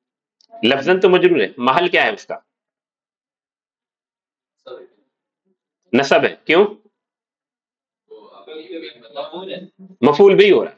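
A man speaks calmly and closely into a microphone, pausing between phrases.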